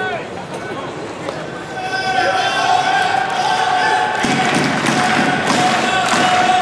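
A large stadium crowd cheers and chants loudly.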